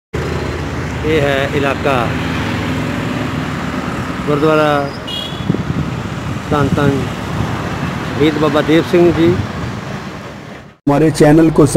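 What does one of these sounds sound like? Traffic rumbles steadily along a nearby road.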